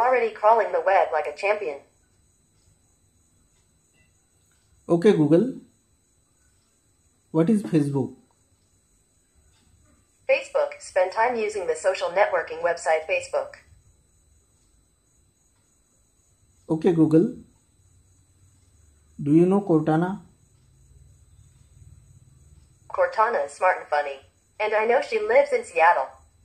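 A small loudspeaker plays short bursts of speech with pauses between them.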